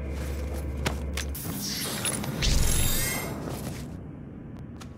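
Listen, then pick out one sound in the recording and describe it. A monster is ripped apart with wet, crunching thuds.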